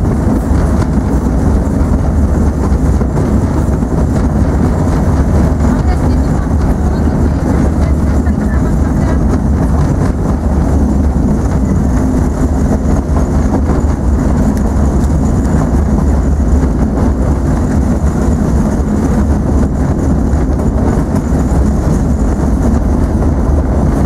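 A small train rumbles steadily along the track, heard from on board.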